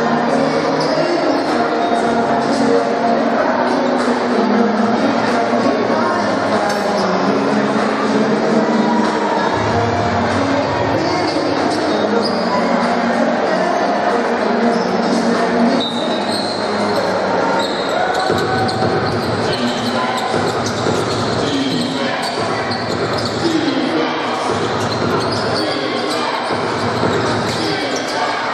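A large crowd chatters and cheers in an echoing hall.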